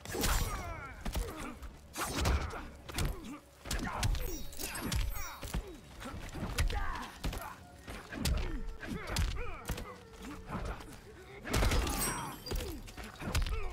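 Punches and kicks land with heavy thuds again and again.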